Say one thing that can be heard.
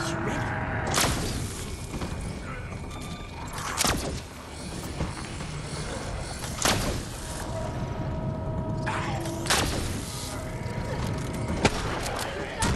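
Pistol shots ring out sharply.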